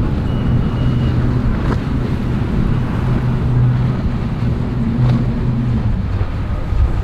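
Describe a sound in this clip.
A speedboat's outboard engines roar as it speeds across the water.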